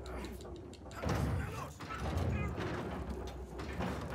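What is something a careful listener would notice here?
A heavy wooden gate creaks and scrapes as it is lifted.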